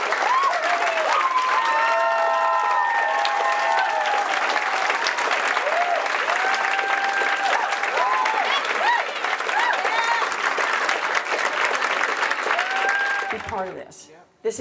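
A large crowd cheers and whoops loudly.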